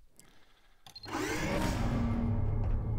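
Sliding doors whoosh open.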